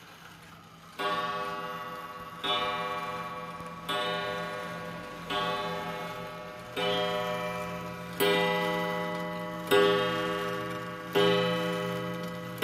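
A mechanical pendulum wall clock strikes the hour on a coiled gong, each ringing chime slowly fading.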